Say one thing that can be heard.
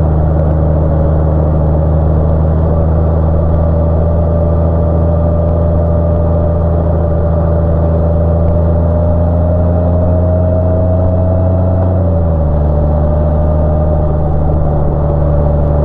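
Wind rushes past as a motorcycle rides along.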